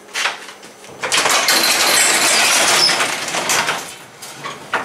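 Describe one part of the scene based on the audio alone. A garage door rattles as it rolls open.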